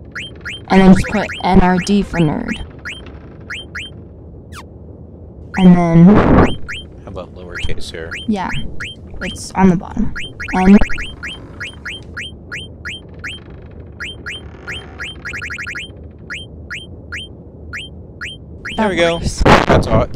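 Short electronic menu blips tick again and again.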